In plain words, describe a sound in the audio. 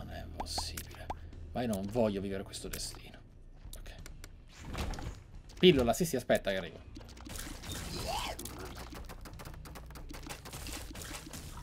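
Game sound effects pop and splatter rapidly.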